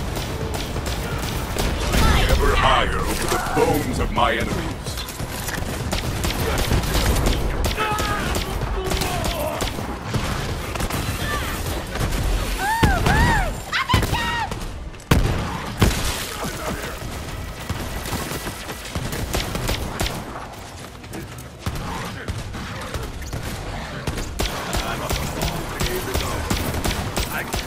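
Rapid gunfire rattles throughout.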